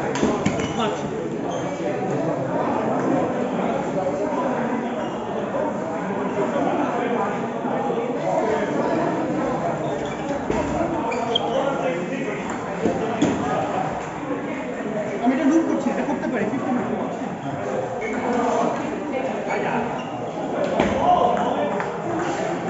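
Ping-pong balls click against paddles and tables.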